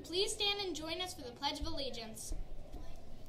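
A young girl speaks brightly and close to a microphone.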